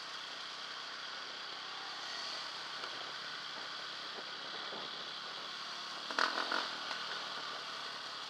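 Other motorbikes roar by nearby.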